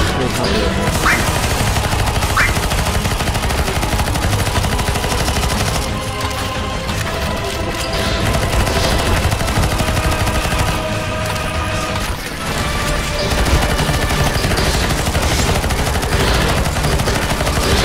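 A gun fires rapid bursts.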